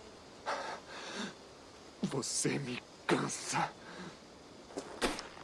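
A man speaks in a low, calm, gravelly voice close by.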